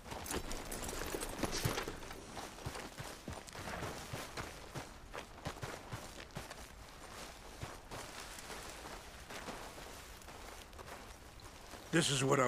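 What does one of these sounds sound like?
Boots crunch on rocky ground as a man walks.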